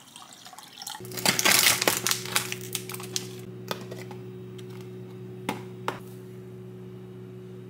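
A plastic lid snaps open.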